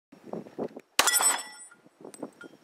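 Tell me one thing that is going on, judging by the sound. A steel target rings with a metallic clang after being hit.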